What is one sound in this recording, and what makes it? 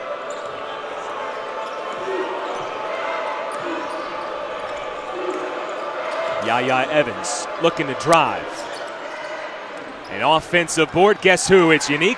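A crowd murmurs steadily in a large echoing arena.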